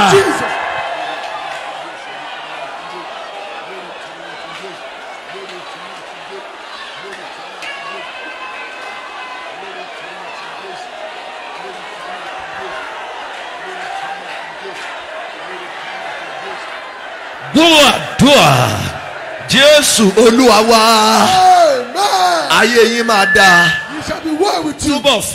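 A man preaches loudly through a microphone in an echoing hall.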